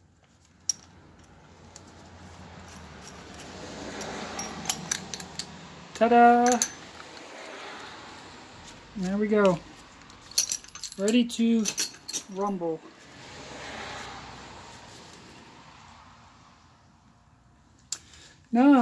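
Metal tool parts clink and clatter as they are handled.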